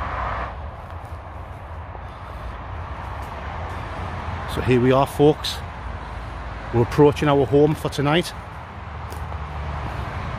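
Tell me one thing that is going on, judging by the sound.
Footsteps tread softly on a dirt path.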